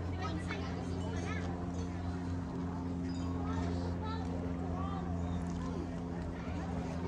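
A crowd of men and women chat quietly outdoors some distance away.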